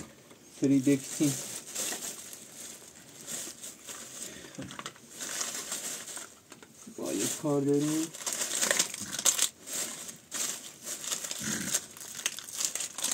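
A plastic bag rustles and crinkles as hands rummage in it.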